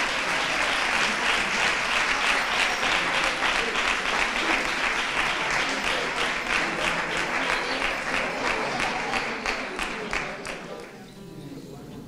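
A group of men and women sing together.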